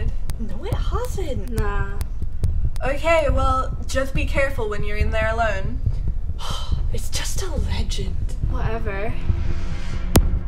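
A teenage girl speaks with animation close by.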